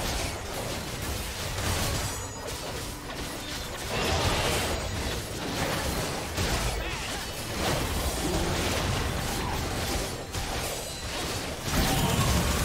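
Magical blasts and clashing strikes sound in a busy fight.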